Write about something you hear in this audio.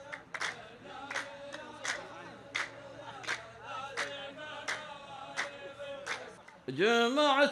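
A group of men clap in rhythm.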